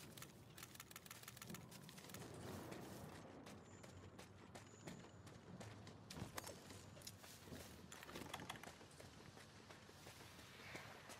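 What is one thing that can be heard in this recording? Footsteps run over rocky ground.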